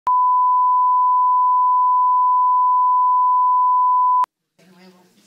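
A steady high test tone beeps loudly.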